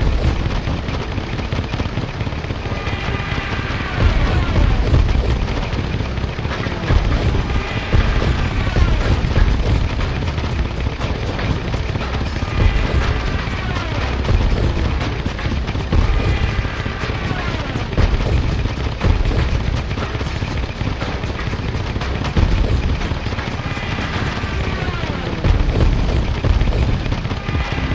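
Propeller planes drone and buzz steadily.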